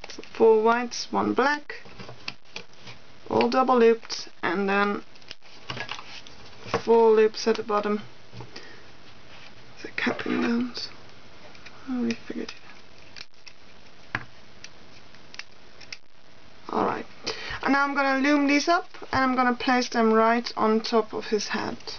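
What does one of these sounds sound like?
Small plastic pieces click softly as rubber bands are stretched over them.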